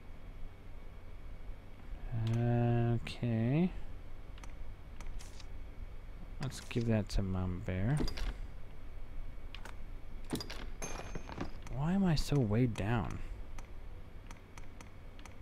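Short menu blips tick as a cursor moves between items.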